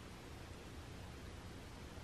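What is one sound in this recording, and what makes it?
A cat chews wet food from a plate.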